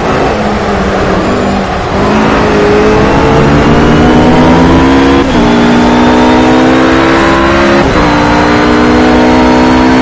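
A GT3 racing car engine accelerates at full throttle, shifting up through the gears.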